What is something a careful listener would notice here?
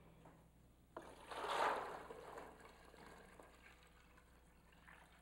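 Water pours from a pot into a bucket.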